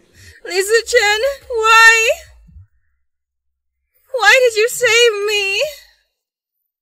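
A young woman speaks close by in a tearful, pleading voice.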